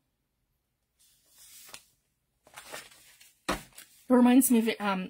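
Paper rustles and slides as sheets are handled.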